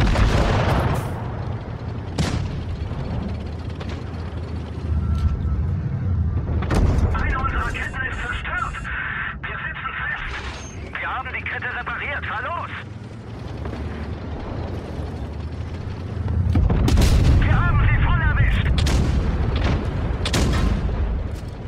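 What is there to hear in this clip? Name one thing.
Tank guns fire with sharp booming blasts.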